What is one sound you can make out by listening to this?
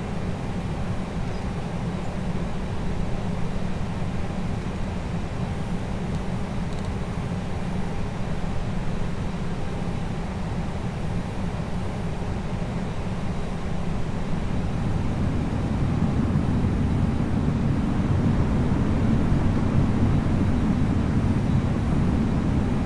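Jet engines hum with a steady low rumble that grows louder.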